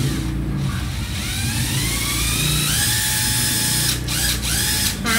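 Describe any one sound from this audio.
A cordless drill whirs as its motor spins up.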